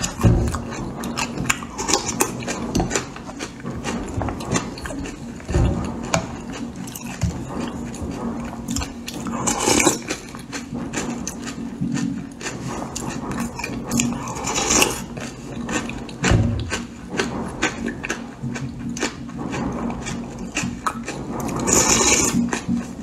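A woman slurps porridge loudly and closely.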